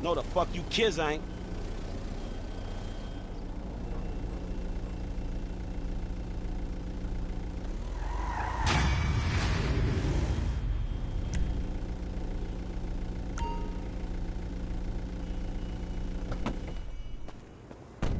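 A van engine idles and runs steadily.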